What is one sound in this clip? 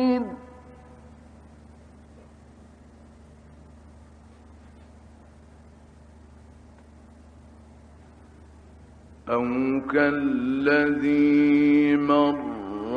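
A man recites in a slow, melodic chant, heard through an old recording.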